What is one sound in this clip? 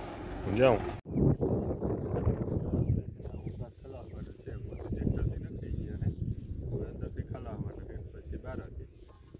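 A young man talks calmly and close by, outdoors.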